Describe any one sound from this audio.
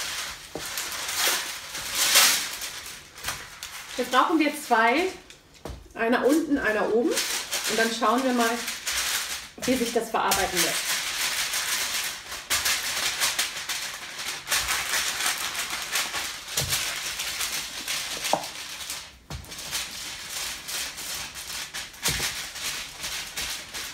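Baking paper crinkles and rustles.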